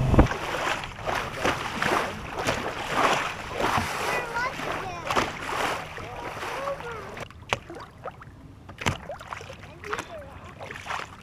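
Small waves slosh and splash against the side of a boat.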